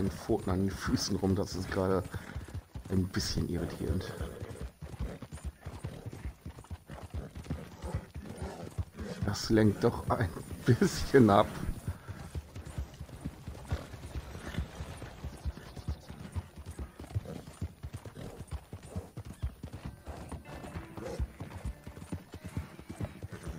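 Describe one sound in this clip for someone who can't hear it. Horse hooves thud steadily on a dirt road.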